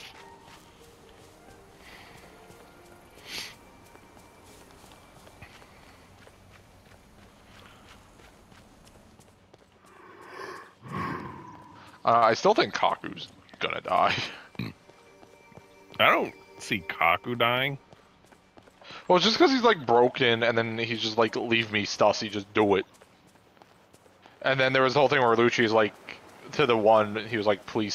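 Footsteps patter quickly on grass and stone.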